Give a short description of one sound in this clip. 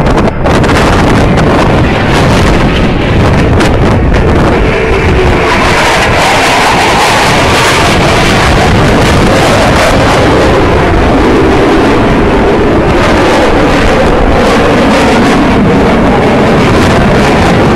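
Jet engines roar loudly overhead and fade into the distance.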